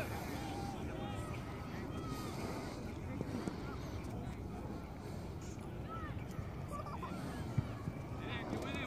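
Young men call out across a playing field in the distance.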